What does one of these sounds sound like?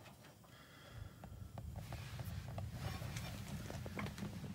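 A gas heater's burner lights and hums steadily.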